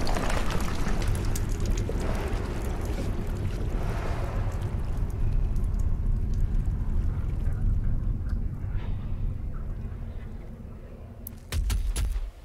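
Flames roar with a deep, steady rumble that slowly fades.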